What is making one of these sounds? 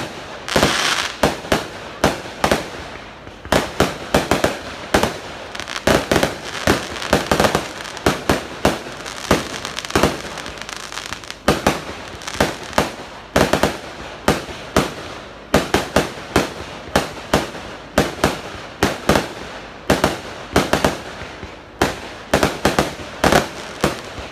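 Fireworks crackle and fizz after each burst.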